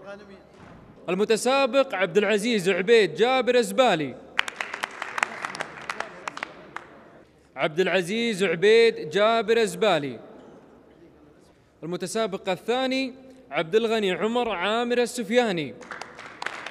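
A young man sings loudly through a microphone.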